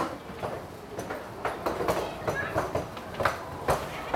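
Suitcase wheels roll over a tiled floor.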